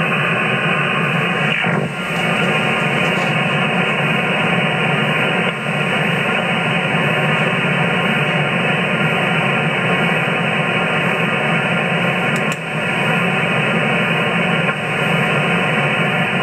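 A radio receiver hisses with steady static from its loudspeaker.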